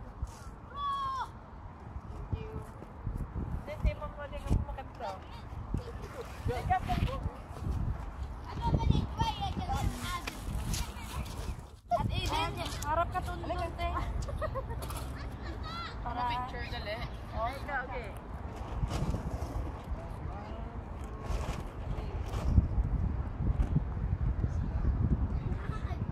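Several women chat and talk over each other nearby, outdoors.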